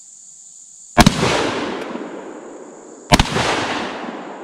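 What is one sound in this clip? A shotgun fires loud blasts that echo across open ground.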